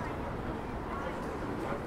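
A wheeled suitcase rolls over paving.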